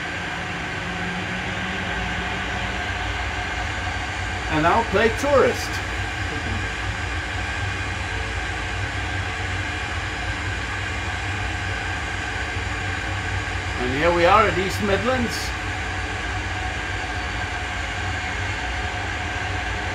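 A low engine drone rumbles steadily throughout.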